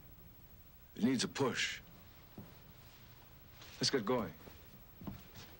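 An older man answers firmly.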